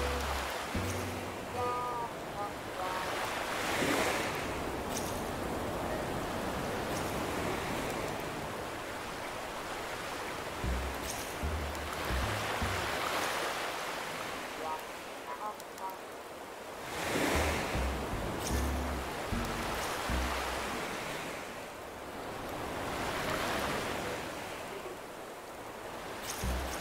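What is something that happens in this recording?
Gentle waves wash in and out on a shore in slow, swelling surges.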